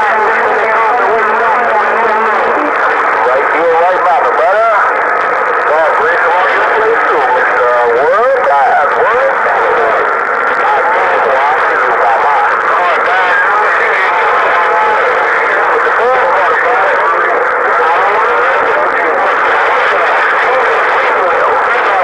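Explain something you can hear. A radio receiver hisses with crackly static and warbling, whistling tones from its small loudspeaker.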